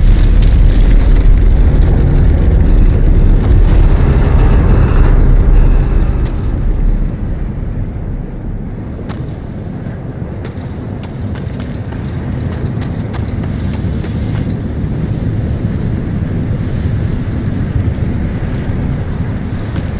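Heavy armored footsteps thud on stone.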